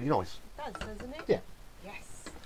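Glasses clink together in a toast.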